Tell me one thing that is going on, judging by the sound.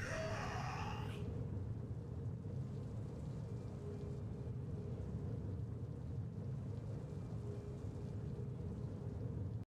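A low, rumbling game soundtrack drones steadily.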